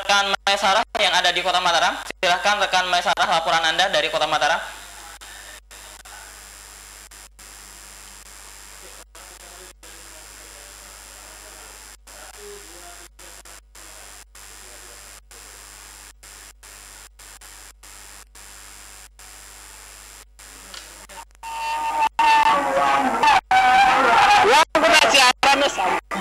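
A man speaks clearly into a microphone, heard through a broadcast.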